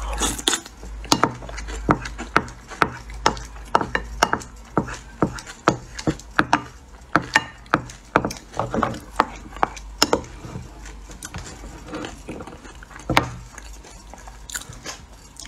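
A woman chews and slurps food wetly, close to a microphone.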